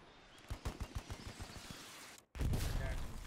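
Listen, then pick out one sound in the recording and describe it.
A machine gun fires a rapid burst of shots.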